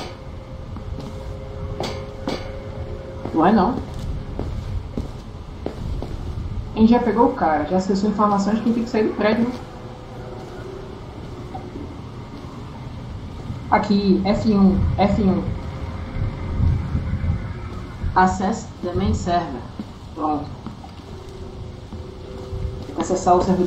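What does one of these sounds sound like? Soft footsteps shuffle on a hard floor.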